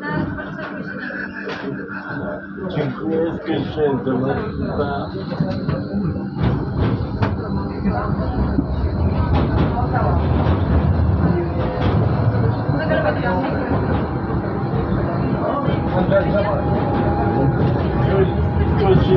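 A tram rumbles and rattles along its rails.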